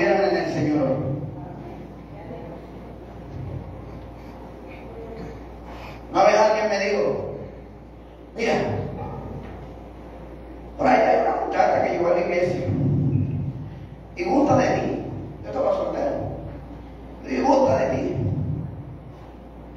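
A man preaches loudly and forcefully through a microphone and loudspeakers in an echoing hall.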